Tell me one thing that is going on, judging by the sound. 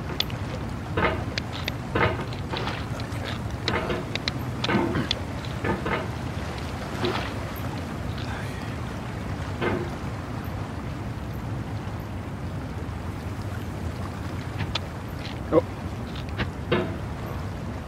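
A metal hammer knocks and scrapes against rock.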